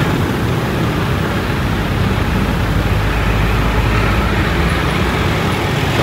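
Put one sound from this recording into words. A bus engine idles and rumbles close by.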